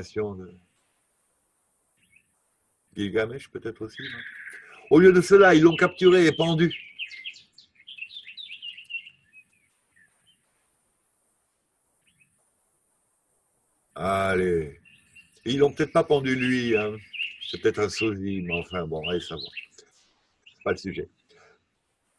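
A man speaks calmly close to a microphone, in bursts with long pauses.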